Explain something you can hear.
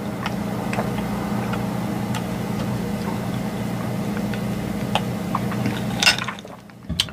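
A woman sips a drink through a straw close to a microphone.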